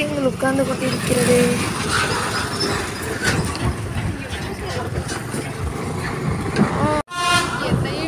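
A heavy truck engine rumbles close by.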